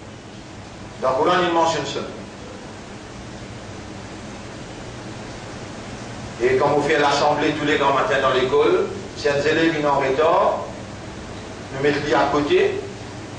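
A man speaks slowly and calmly into a microphone, in short phrases with pauses.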